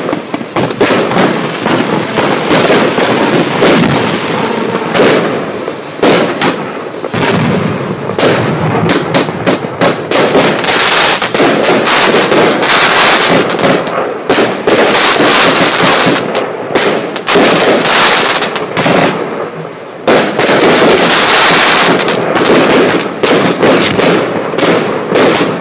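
Fireworks burst with loud bangs and crackles.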